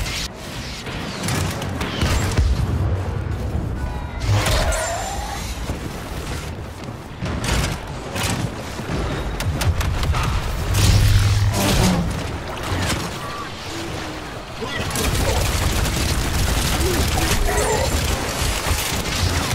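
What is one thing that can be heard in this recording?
Blaster guns fire rapid shots.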